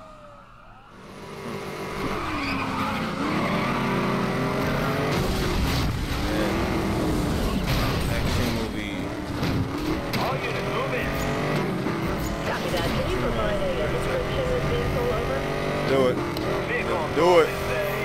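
A sports car engine roars and revs at high speed.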